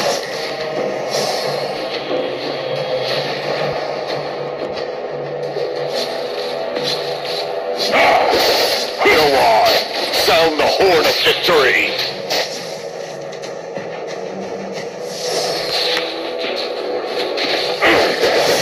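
Game spell effects whoosh and clash in a battle.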